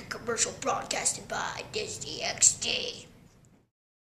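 A young boy speaks calmly and close by.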